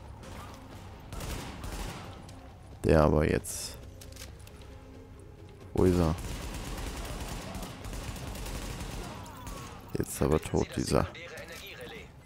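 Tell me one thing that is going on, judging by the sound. A rifle fires bursts of gunshots.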